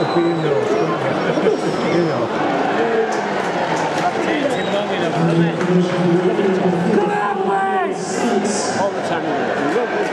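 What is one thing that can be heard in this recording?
A large crowd cheers and chants loudly in an open stadium.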